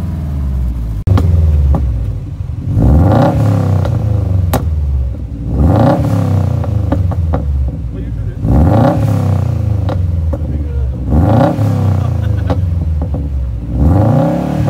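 A second car engine revs hard through its exhaust in repeated loud bursts.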